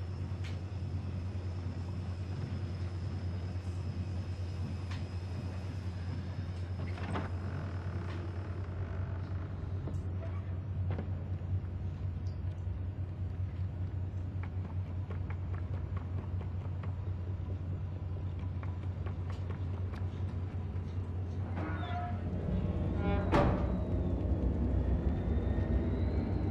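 Light footsteps patter on wooden boards.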